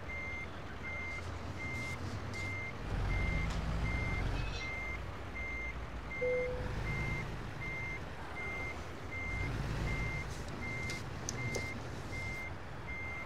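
A truck engine rumbles low and rises and falls.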